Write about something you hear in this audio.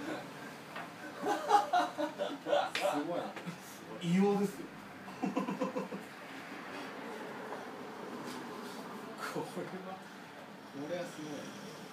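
Several men chat casually nearby.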